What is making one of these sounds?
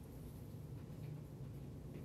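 A marker taps and squeaks against a whiteboard.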